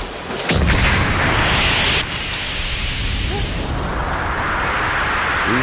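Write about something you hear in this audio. Water rushes loudly.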